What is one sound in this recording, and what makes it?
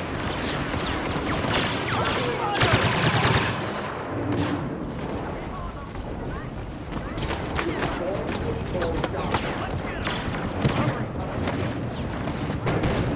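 Blasters fire in rapid zapping bursts.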